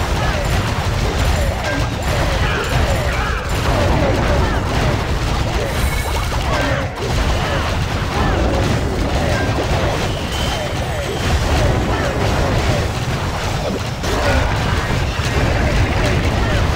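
Game battle noises clash and thump throughout.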